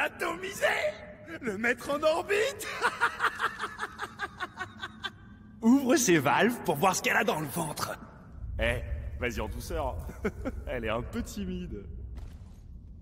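A young man talks with animation, close by.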